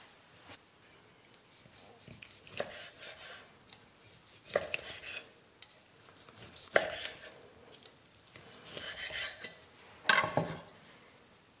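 A knife slices through tender meat on a wooden board.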